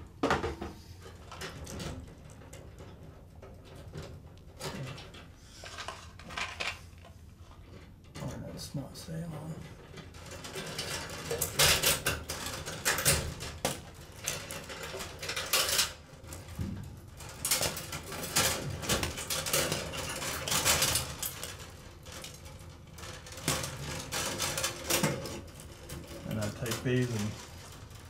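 Wires rustle and rattle against sheet metal.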